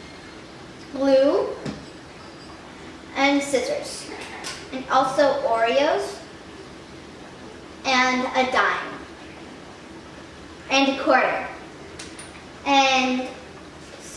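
A young girl talks calmly and close by, in short phrases with pauses.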